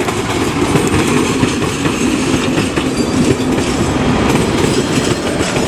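Train wheels clatter rapidly on the rails.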